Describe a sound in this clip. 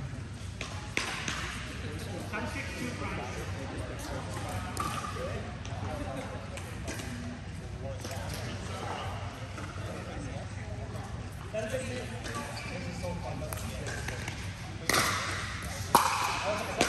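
Paddles strike a plastic ball with sharp pops in an echoing hall.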